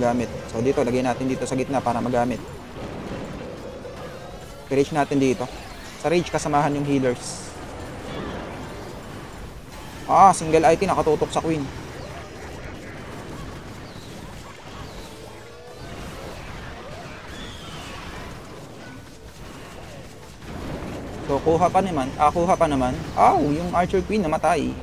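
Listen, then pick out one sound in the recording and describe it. Battle sound effects and explosions play from a game.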